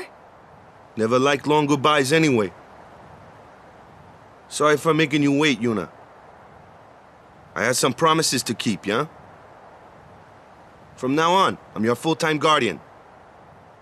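A young man speaks in a relaxed, friendly way.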